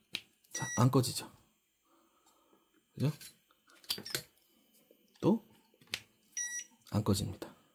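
An electronic charger beeps.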